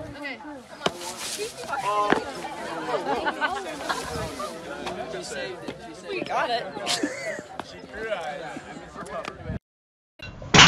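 Young men and women laugh and shout nearby outdoors.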